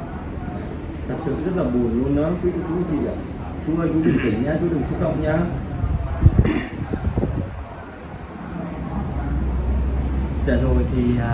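A middle-aged man speaks in a low, tearful voice close by.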